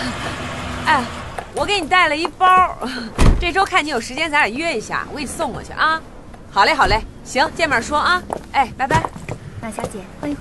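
A young woman talks brightly on a phone.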